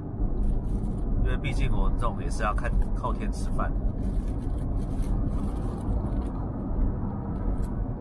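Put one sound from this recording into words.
A car engine rumbles low and steady inside the cabin.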